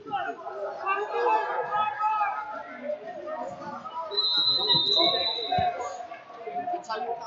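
Wrestlers' shoes squeak and thump on a mat.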